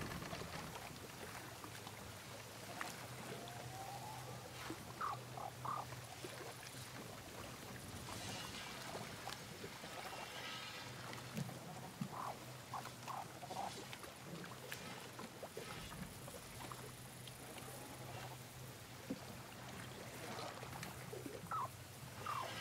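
Waves slosh and lap against a small wooden boat.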